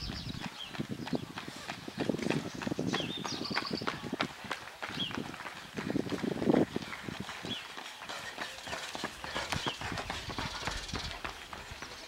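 Running footsteps slap on the road nearby.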